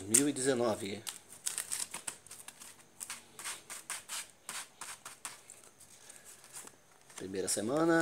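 Playing cards riffle and flick as they are shuffled by hand.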